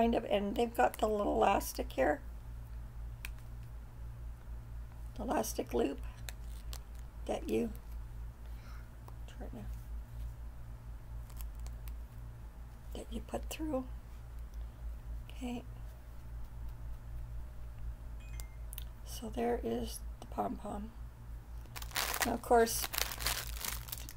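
An older woman talks calmly and close by in short bursts.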